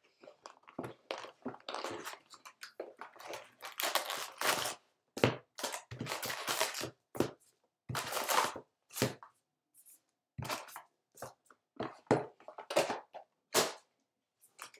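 Cardboard scrapes and rustles as a box is opened.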